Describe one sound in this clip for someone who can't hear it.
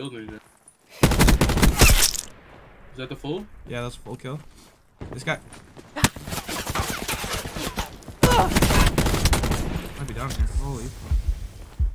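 A video game automatic rifle fires in rapid bursts.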